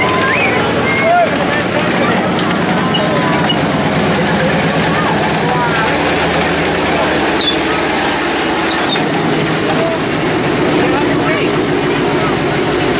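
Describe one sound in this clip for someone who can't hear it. A heavy tank engine rumbles loudly and steadily close by.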